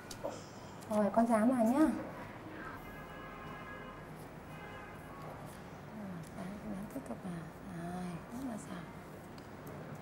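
A young woman speaks brightly and clearly, close by.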